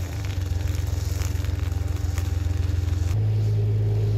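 A grass strimmer whirs nearby.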